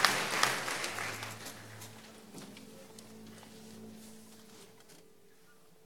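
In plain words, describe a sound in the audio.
An orchestra plays softly.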